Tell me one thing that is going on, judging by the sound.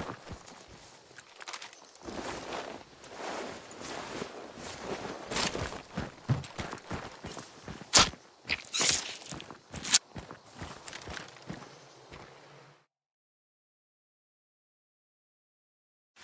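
Leaves and branches rustle as someone pushes through bushes.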